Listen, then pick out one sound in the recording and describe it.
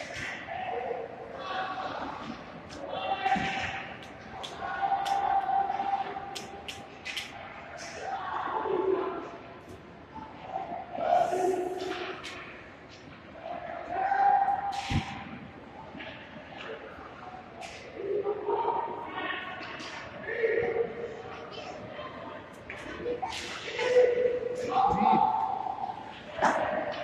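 Hockey sticks clack against a puck and the ice.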